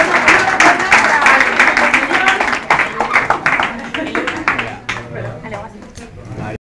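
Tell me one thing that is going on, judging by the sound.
A crowd applauds loudly nearby, then the clapping slowly fades.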